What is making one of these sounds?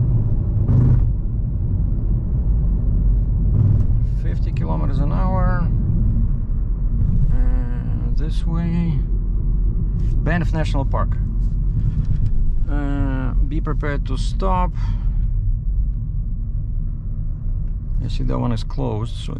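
A car's engine and tyres rumble steadily on the road from inside the car.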